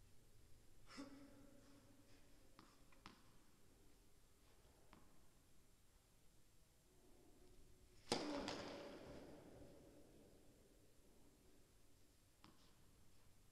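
A tennis ball bounces on a hard court a few times.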